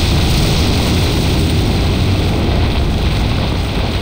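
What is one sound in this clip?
Stone rumbles and crashes as a wall collapses.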